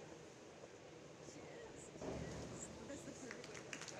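A diver splashes into the water.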